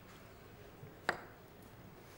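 A glass is set down on a table with a knock.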